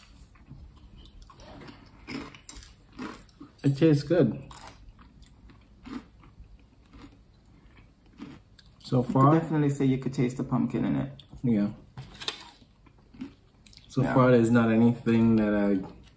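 A woman chews food with smacking sounds.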